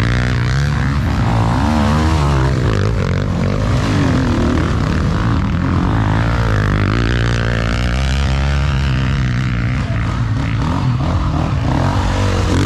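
Dirt bike tyres spray loose gravel and dirt.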